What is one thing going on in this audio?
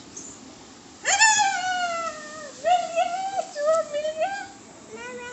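A young child wails loudly close by, in rising and falling cries.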